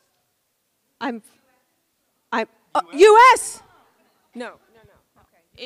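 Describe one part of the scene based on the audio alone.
A young woman speaks through a microphone.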